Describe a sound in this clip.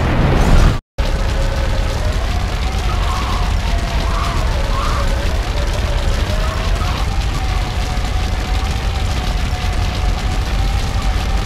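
A forklift engine hums and whines steadily.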